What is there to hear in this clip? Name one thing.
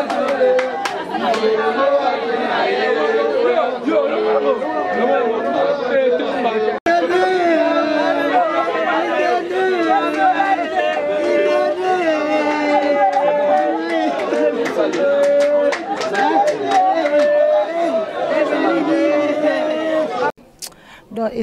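A group of women sing and wail loudly together.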